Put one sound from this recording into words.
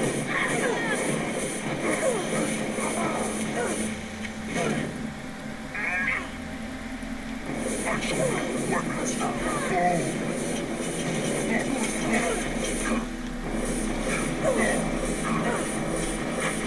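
Fiery spells crackle and burst in a busy game battle.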